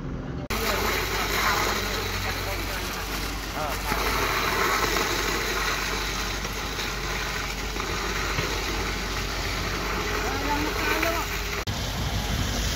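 Wet concrete gushes from a pump hose.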